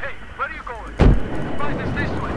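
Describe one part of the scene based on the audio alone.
A rocket launcher fires with a loud, sharp blast.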